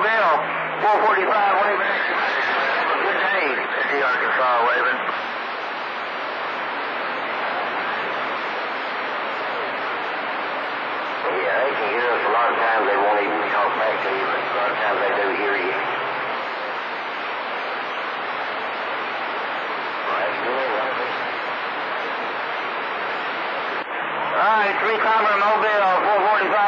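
Radio static hisses and crackles steadily through a loudspeaker.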